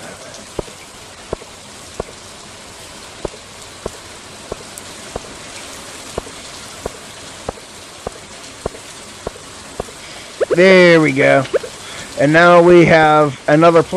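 Rain patters softly and steadily.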